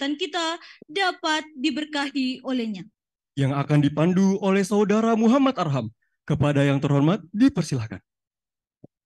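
A woman speaks into a microphone, heard over loudspeakers in a large echoing hall.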